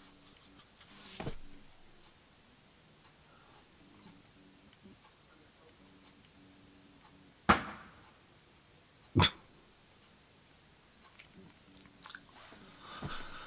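A man speaks quietly, close by.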